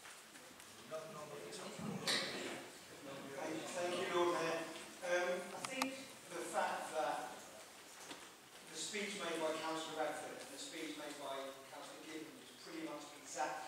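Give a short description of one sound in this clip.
A middle-aged man speaks with animation in an echoing hall.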